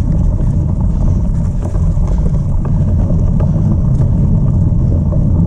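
Wind rumbles loudly against a microphone while moving fast outdoors.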